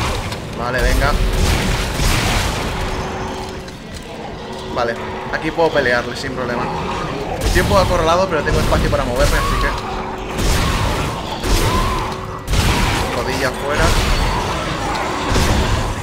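Creatures shriek and screech.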